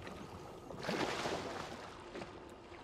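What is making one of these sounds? Water splashes loudly, then settles.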